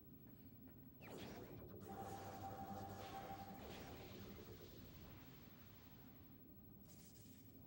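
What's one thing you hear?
A shimmering electronic tone swells and slowly fades.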